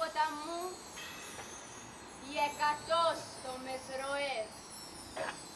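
A young woman declaims in a sing-song voice, heard through loudspeakers.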